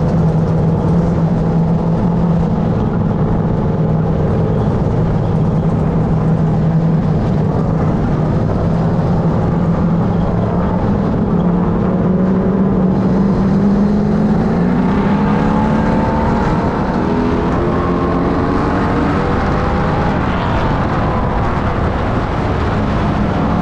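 Other race car engines rumble nearby.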